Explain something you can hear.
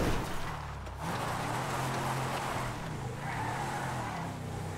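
A car engine revs as the car drives off.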